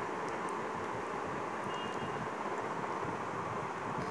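A baby babbles softly close by.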